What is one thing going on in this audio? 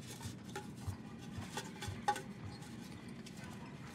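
Footsteps patter on a hard floor.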